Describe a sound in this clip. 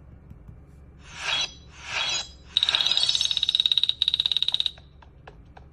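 A mobile game plays bright chiming reward sounds.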